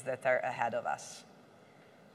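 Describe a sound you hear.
A woman speaks with animation through a microphone in a large room.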